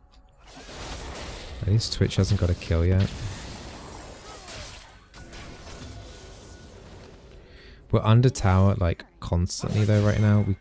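Game sound effects whoosh and clash.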